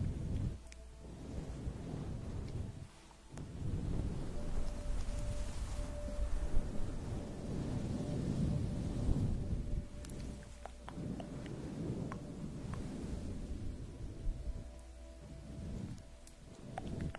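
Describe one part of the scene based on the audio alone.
A young woman whispers softly into a microphone up close.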